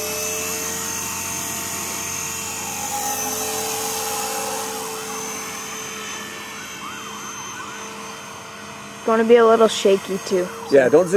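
A model helicopter's engine whines steadily as it lifts off and flies overhead.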